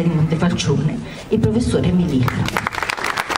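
A woman sings loudly through a microphone in a large echoing room.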